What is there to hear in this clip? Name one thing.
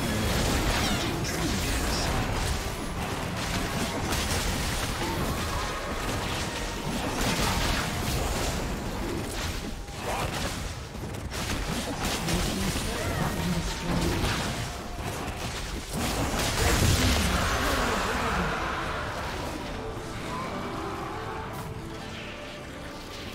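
Spells and weapon blows crackle and burst in a busy fight.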